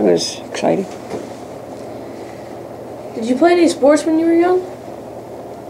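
An elderly woman speaks calmly, close by.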